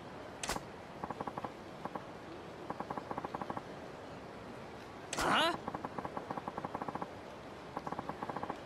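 Rapid electronic blips tick in short bursts.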